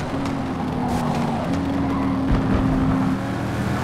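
Tyres screech on tarmac through a corner.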